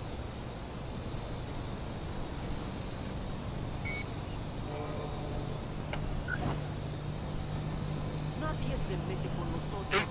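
A small drone's propellers whir steadily.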